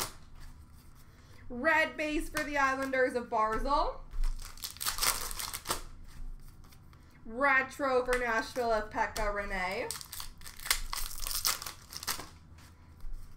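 Trading cards rustle and slide as they are sorted through by hand.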